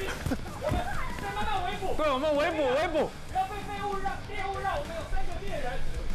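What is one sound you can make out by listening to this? A young woman calls out while running.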